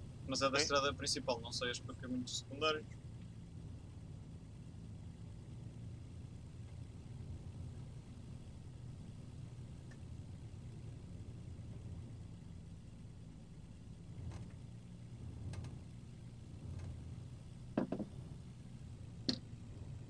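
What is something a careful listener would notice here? A vehicle engine rumbles low and steady from inside the cab.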